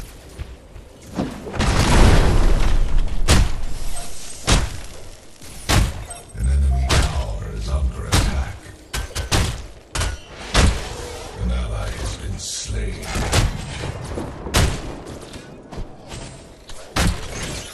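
Melee blows and impacts crack in a video game battle.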